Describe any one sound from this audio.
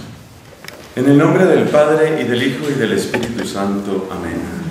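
A man speaks calmly and steadily nearby.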